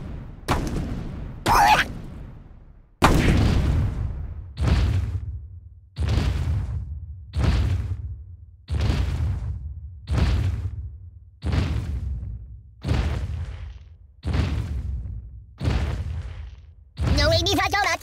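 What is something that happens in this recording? A heavy stone statue thuds down again and again, each blow ringing out and fading.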